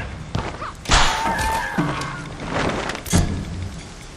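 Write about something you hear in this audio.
A body crashes down with a heavy thud.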